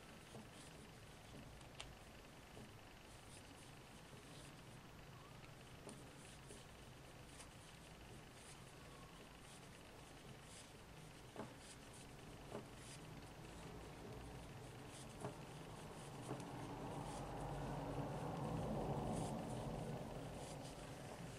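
Knitting needles click and tap softly against each other.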